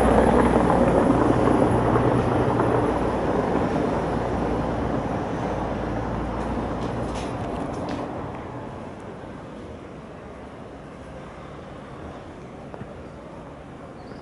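A car engine rumbles close by and gradually quietens.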